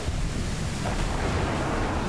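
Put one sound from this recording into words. Thunder rumbles in a storm.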